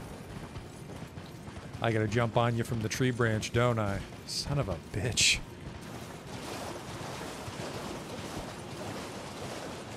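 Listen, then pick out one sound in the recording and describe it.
A horse's hooves gallop over the ground.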